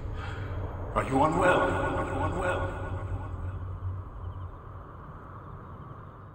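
A man asks a question in a concerned voice.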